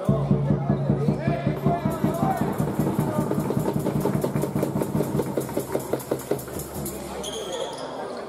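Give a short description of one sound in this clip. Spectators clap in a steady rhythm in an echoing hall.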